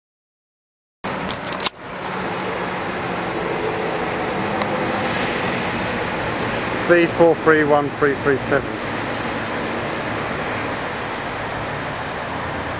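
A vehicle rumbles steadily as it travels.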